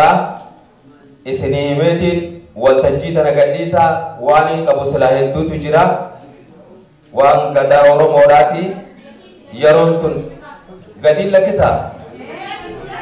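A man speaks with animation into a microphone through a loudspeaker in an echoing room.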